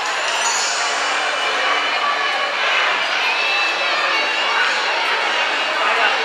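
A crowd of adults chats in a large room.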